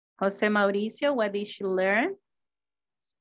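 A woman speaks clearly over an online call, then falls silent.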